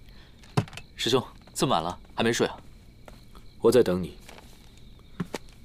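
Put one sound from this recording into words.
A young man speaks softly and calmly, close by.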